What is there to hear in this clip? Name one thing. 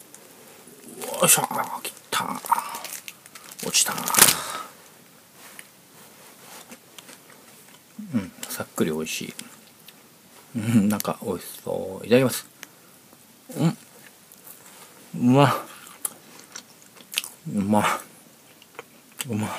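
A man talks close by with animation, in short bursts.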